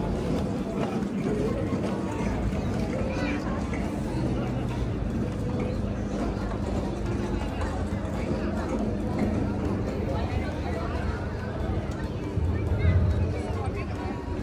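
People chatter at a distance outdoors.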